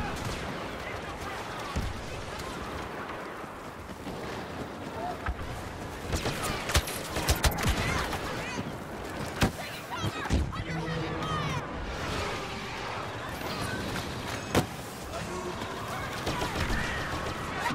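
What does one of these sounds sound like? Blaster guns fire in rapid sharp bursts.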